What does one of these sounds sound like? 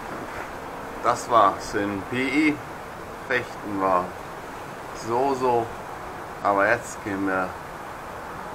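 A young man speaks close up.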